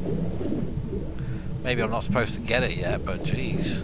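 Bubbles burble up through water.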